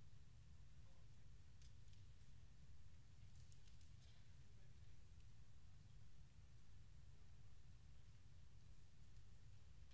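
Footsteps tap faintly across a large, quiet hall.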